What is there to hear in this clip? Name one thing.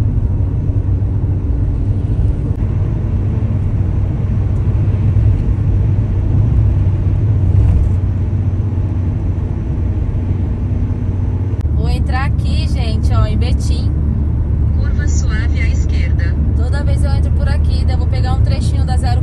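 Tyres rumble steadily on a road from inside a moving car.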